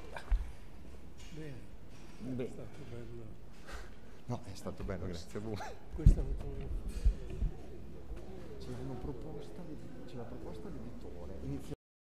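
A crowd of men and women chat in a large echoing hall.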